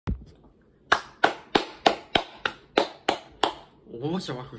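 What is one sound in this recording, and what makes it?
A young person claps hands in a quick steady rhythm.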